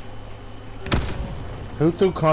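An explosion booms once.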